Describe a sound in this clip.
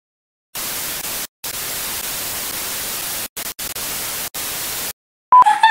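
Loud television static hisses, cutting out briefly a few times.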